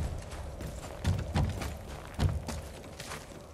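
Heavy footsteps thump on wooden boards.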